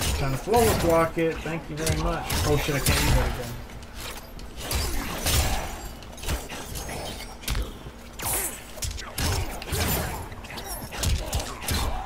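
Punches and kicks land with heavy thuds and cracks.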